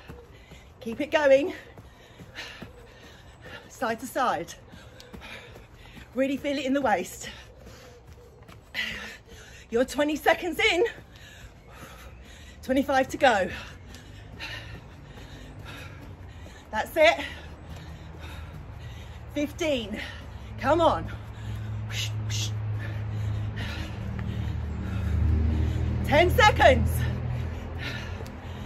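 Feet thud lightly on a mat as a person jumps.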